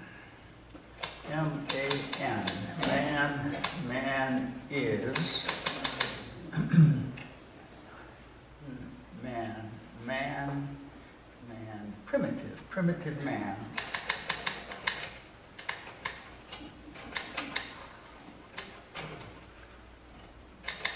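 A typewriter clacks in quick bursts of keystrokes.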